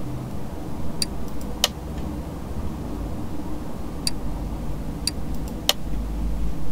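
Short, sharp menu clicks sound a few times.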